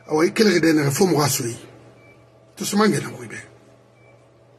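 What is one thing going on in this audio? An elderly man speaks emphatically, close to a microphone.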